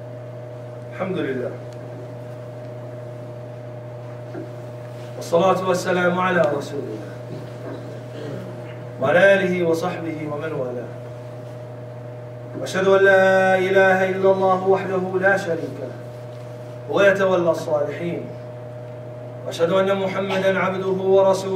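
A young man speaks calmly into a microphone, in phrases with pauses between them.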